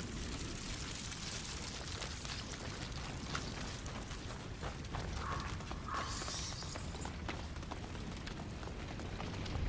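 Footsteps crunch on the ground.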